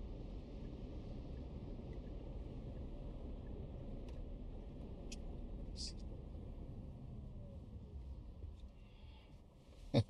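A car's engine and tyres rumble steadily on the road, quieting as the car slows.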